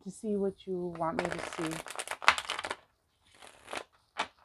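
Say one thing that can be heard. Playing cards riffle and snap together as they are shuffled.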